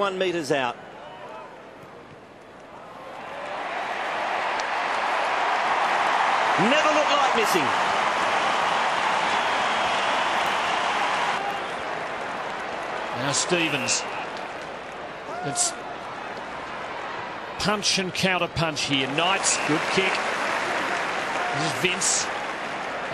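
A man commentates with excitement over a microphone.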